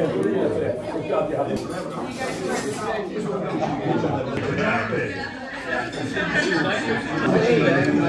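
A knife scrapes across a plate while cutting food.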